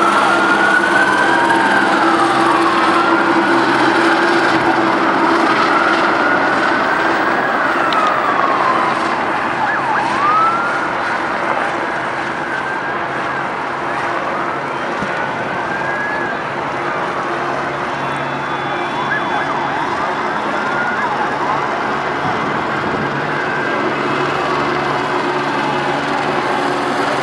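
Car engines idle and rumble.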